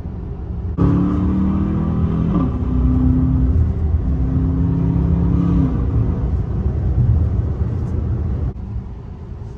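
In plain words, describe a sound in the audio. A car engine roars loudly from inside the cabin, its pitch climbing and dropping as it shifts gears.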